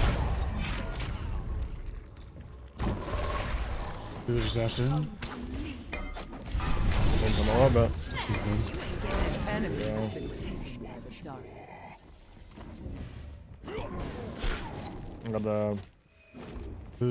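Game fight effects whoosh and clash.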